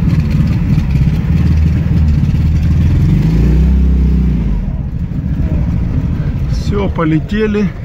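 An engine rumbles low and rough, revving up and easing off.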